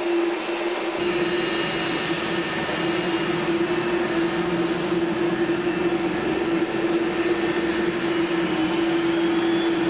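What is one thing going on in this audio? A four-engine BAe 146 jetliner whines as it taxis.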